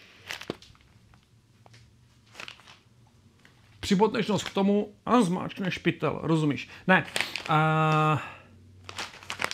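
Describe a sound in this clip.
Pages of a book rustle as a man flips through them.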